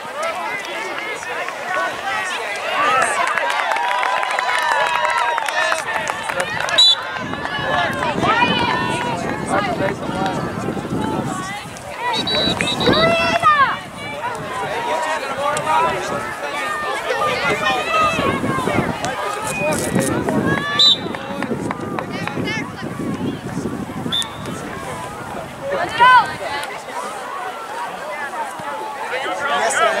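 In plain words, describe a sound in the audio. Children shout and call out outdoors.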